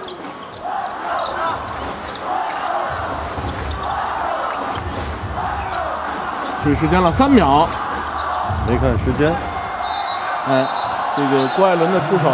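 A large crowd chants and cheers in an echoing arena.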